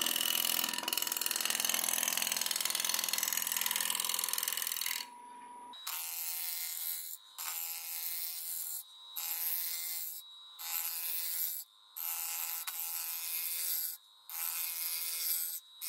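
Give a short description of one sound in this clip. A chisel scrapes and cuts against spinning wood in repeated bursts.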